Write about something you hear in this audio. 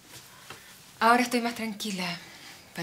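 A woman speaks quietly nearby.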